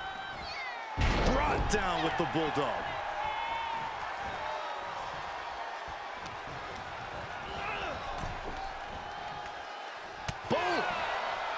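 Heavy thuds of bodies slam onto a wrestling ring.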